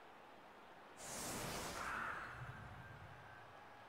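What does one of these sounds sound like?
A magical blast bursts with a whoosh.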